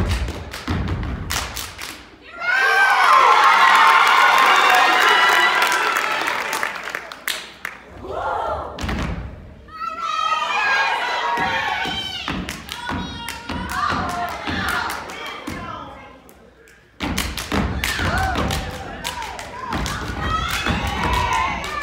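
Dancers stomp and clap in rhythm in a large echoing hall.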